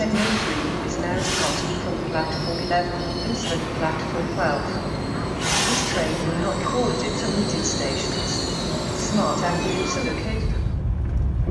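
A high-speed train glides into a station.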